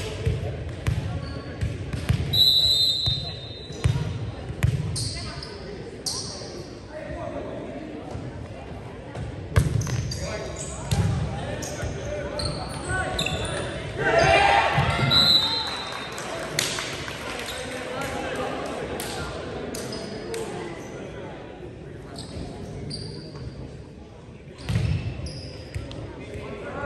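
A volleyball thuds as players hit it in a large echoing gym.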